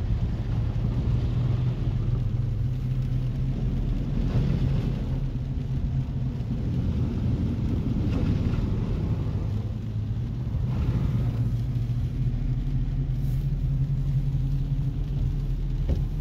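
A car engine hums steadily inside the cabin.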